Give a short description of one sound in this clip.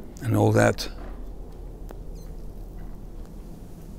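A man puffs on a cigar.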